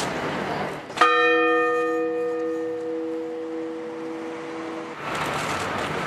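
A church bell strikes once and rings out slowly.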